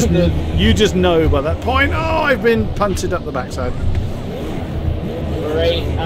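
Tyres squeal as a car skids through a corner.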